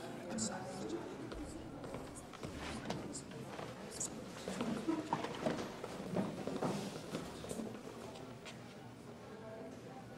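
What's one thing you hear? A crowd murmurs and calls out in a large room.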